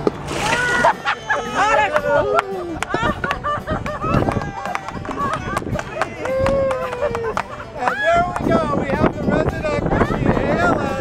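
A group of men and women laugh and cheer outdoors.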